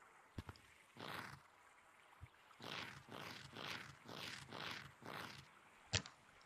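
Hands grab and pull on a rope in quick, even strokes.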